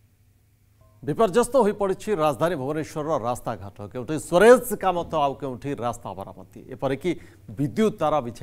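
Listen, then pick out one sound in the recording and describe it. A man speaks clearly and steadily into a microphone, as if presenting news.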